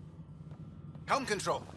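A woman speaks briefly.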